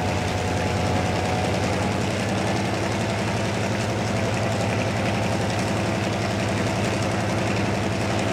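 A diesel locomotive engine drones steadily close by.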